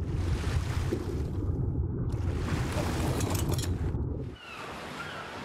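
Water churns and bubbles with a deep, muffled rumble.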